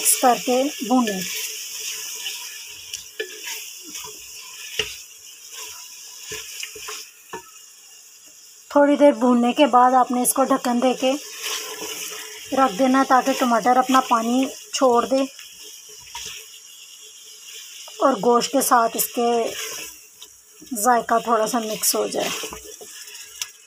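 Food sizzles and bubbles in a pot.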